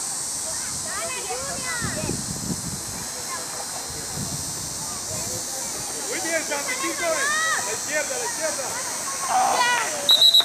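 Young children shout and call out to each other outdoors.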